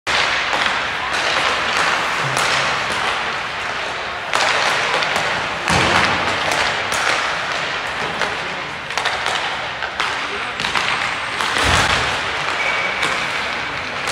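Skate blades scrape and carve across ice in a large echoing rink.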